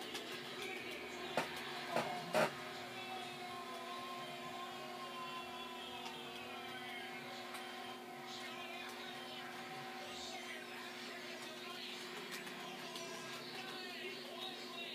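Upbeat electronic video game music plays through small speakers.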